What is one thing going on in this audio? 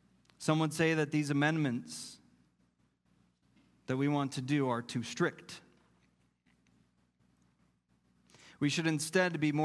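A man speaks calmly and clearly into a microphone, with pauses.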